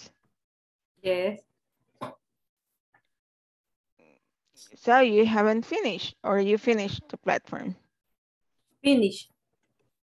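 A woman speaks calmly through an online call headset microphone.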